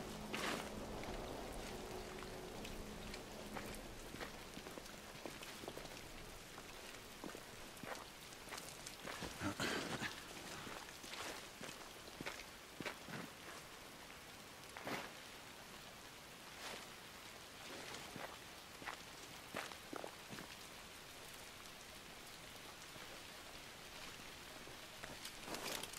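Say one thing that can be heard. Footsteps splash and scuff on wet stone.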